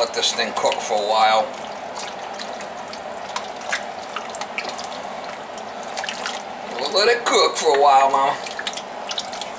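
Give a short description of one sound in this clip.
A spoon stirs thick chili in a large metal pot with wet squelching.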